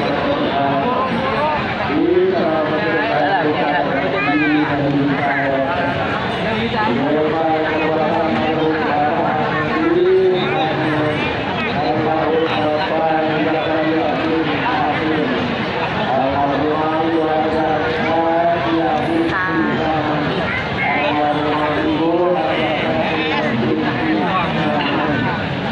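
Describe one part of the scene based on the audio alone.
A crowd of men and women chants together in a slow, drawn-out melody.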